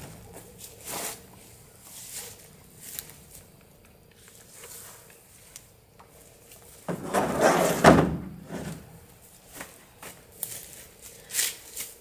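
Wooden boards knock and clatter as they are pulled and tossed.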